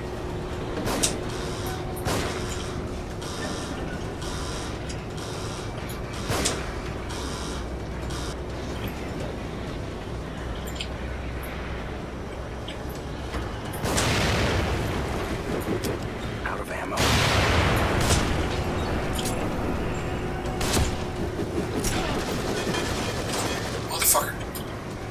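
Gunshots bang sharply now and then.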